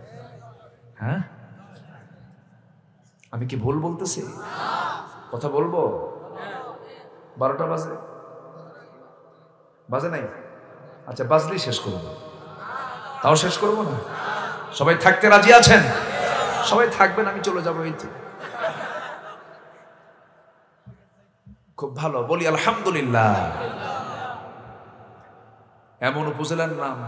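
A man speaks with animation into a microphone, heard through loudspeakers in a large echoing space.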